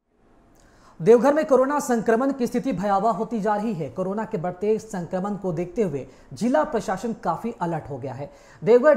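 A young man speaks clearly and steadily into a microphone, like a news presenter.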